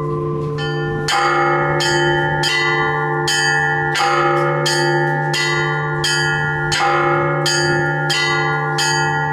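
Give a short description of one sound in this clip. The bell ringing speeds up into a quick, lively peal.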